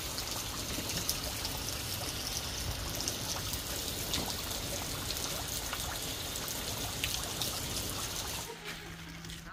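Rain patters steadily on the ground and into water outdoors.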